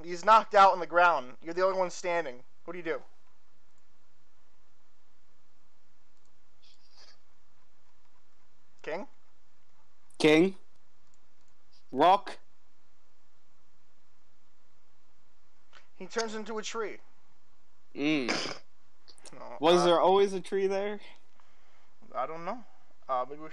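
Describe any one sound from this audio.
A young man talks casually into a close microphone, in bursts with pauses.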